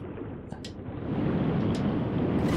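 Air rushes past during a long fall.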